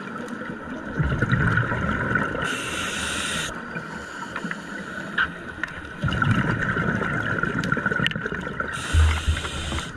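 Air bubbles from a scuba diver gurgle and rumble underwater.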